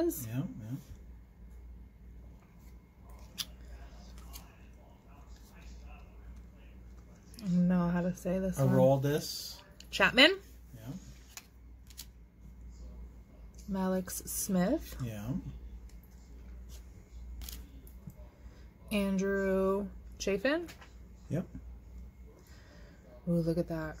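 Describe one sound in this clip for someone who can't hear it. Trading cards slide and rustle softly against each other.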